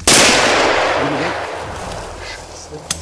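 A rifle shot cracks and echoes through the surroundings.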